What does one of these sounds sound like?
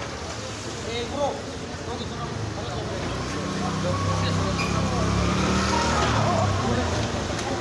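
A motor scooter engine hums past close by.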